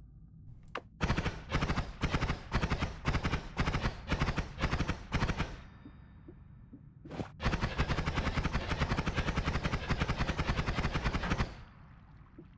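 A magic wand fires a rapid stream of crackling zaps.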